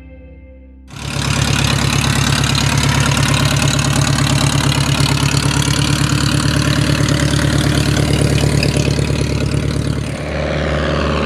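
A small propeller plane's engine drones loudly and steadily.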